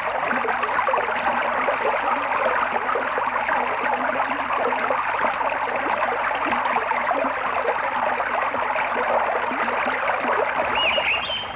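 Water splashes and rushes steadily over a turning water wheel.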